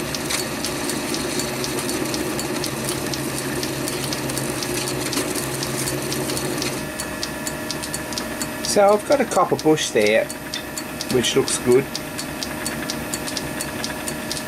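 A lathe motor hums steadily as the spindle spins.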